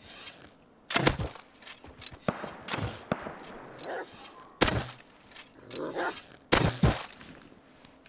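A bow twangs as arrows are shot.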